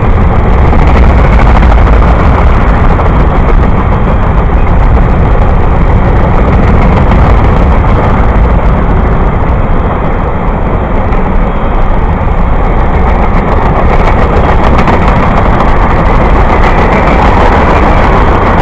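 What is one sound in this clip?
Steel wheels clatter on the rails.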